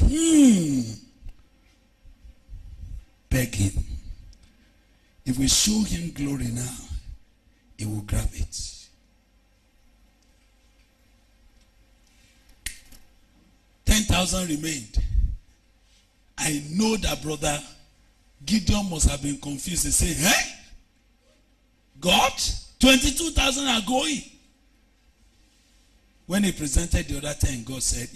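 A man preaches with animation into a microphone, in bursts with pauses.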